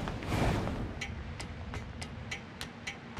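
Metal ladder rungs clank in an even rhythm.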